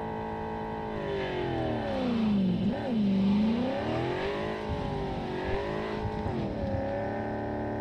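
A car engine revs up and down sharply as the car slides through a turn.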